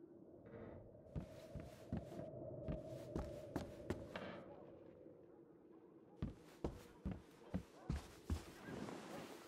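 Footsteps knock on wooden floorboards.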